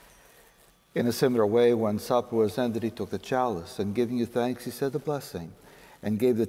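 An elderly man speaks steadily through a microphone.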